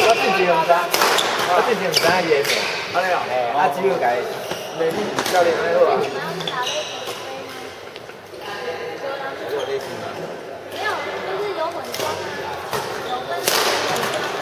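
A racket strikes a shuttlecock with sharp pops in an echoing hall.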